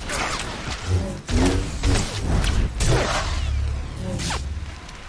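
Energy blades swoosh and clash in a fight.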